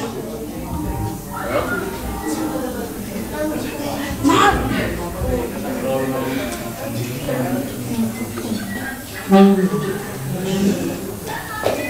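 A middle-aged woman speaks into a microphone through a loudspeaker.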